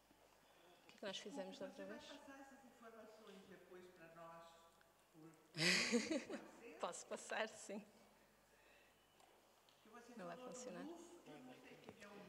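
A woman speaks calmly through a microphone in a reverberant hall.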